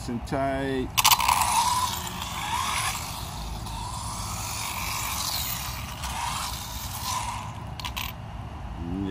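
An electric motor whines and revs up and down as a small model car speeds around.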